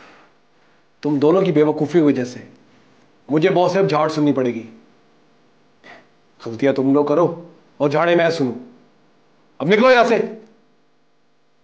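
A young man speaks tensely and close by, in short bursts.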